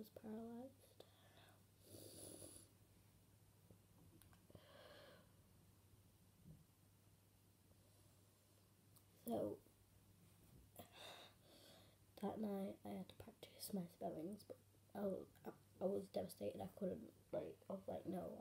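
A girl talks calmly and close by.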